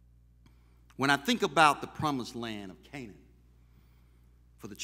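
A man preaches with emphasis into a microphone.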